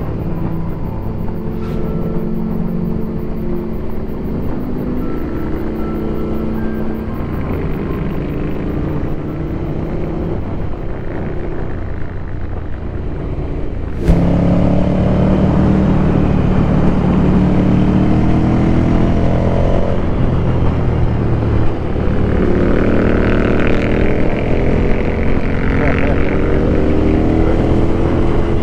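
A motorcycle engine hums steadily and rises and falls in pitch as it changes gear.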